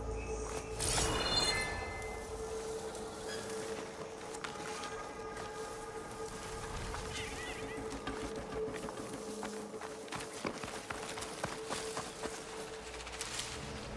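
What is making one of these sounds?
Leafy plants rustle as someone pushes through them.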